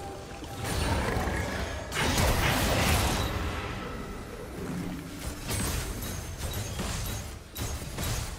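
Magic spells whoosh and crash as figures fight.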